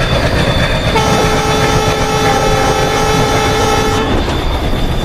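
A train horn blares loudly for a few seconds.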